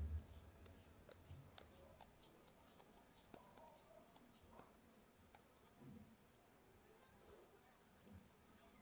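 Yarn stems rustle and tap softly against a wooden surface as hands handle them.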